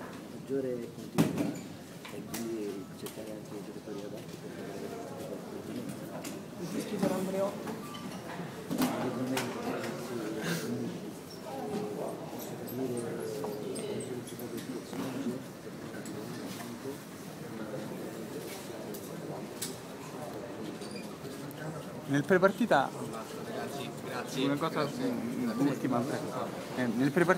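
People murmur and talk in an echoing room.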